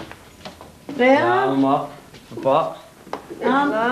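A man speaks warmly at close range.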